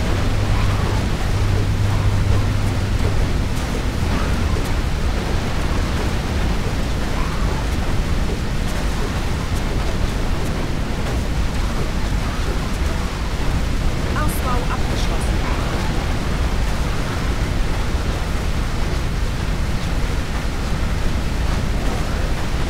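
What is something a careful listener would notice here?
Magic blasts explode and crackle without pause.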